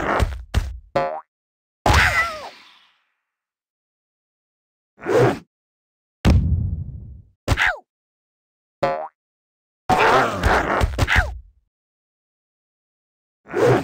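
Short cartoonish game sound effects pop and chime in bursts.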